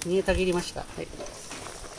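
A metal lid clanks on a pot.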